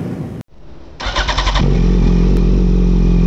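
A motorcycle engine starts up and settles into a deep, steady idle.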